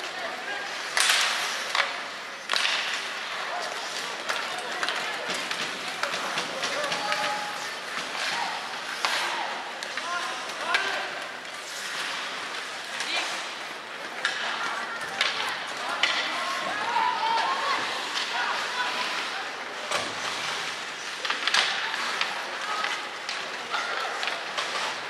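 Hockey sticks clack sharply against a puck.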